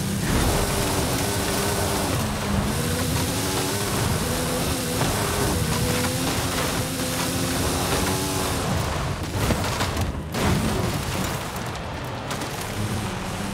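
A sports car engine roars at high revs, rising and falling with gear changes.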